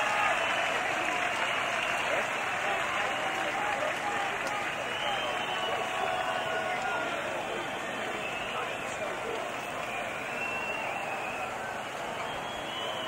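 Live band music plays loudly through big loudspeakers, heard from far back in the crowd.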